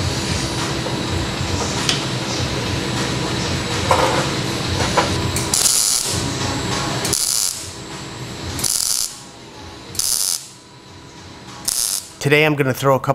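An electric welder crackles and hisses steadily.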